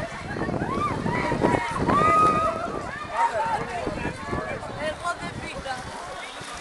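Swimmers splash in water.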